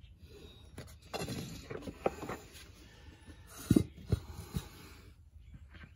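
A drain bolt is unscrewed by hand from a metal scooter gearcase and clinks.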